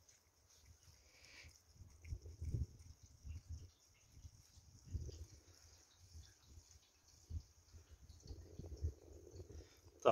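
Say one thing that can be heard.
Oil trickles and gurgles as it is poured into a tank.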